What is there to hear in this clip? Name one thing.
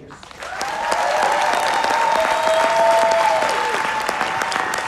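A crowd of men and women cheers and whoops.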